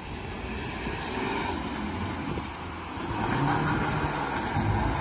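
Tyres squeal on wet asphalt as a car drifts.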